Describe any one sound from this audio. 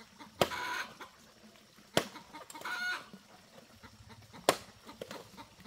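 A knife chops sharply into bamboo.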